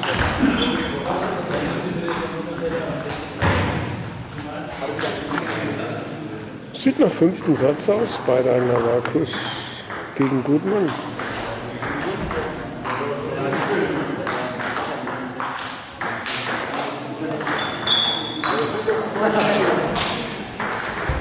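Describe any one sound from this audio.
A table tennis ball clicks back and forth on paddles and a table in an echoing hall.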